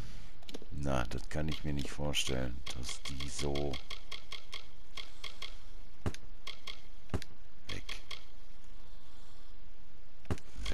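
Soft menu clicks tick.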